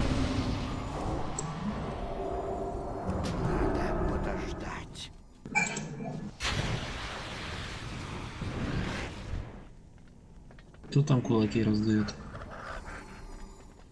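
Weapons clash and spells burst in a chaotic battle.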